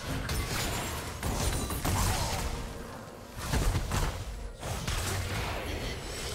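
Magic spells crackle and burst with impacts during a chaotic battle.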